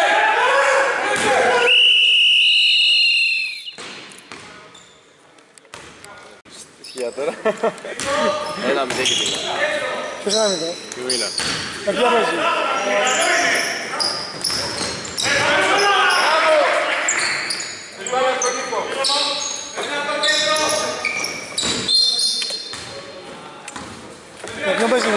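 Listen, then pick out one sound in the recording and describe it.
Basketball players' sneakers squeak in an echoing hall.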